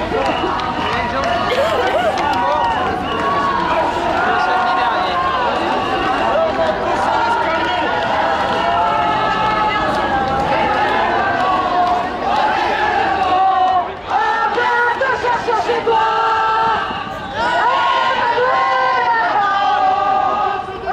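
A large crowd of men and women chants loudly together outdoors.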